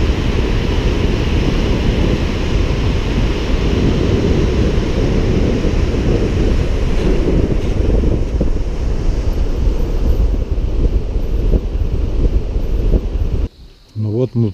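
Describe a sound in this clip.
A river rushes loudly over rocks.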